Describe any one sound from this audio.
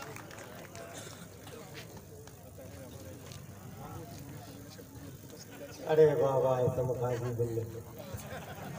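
A crowd of men murmurs and talks in the background outdoors.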